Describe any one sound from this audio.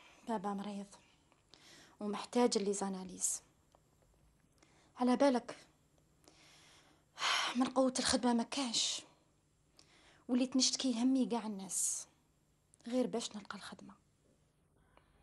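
A young woman speaks calmly and close by, in bursts with pauses.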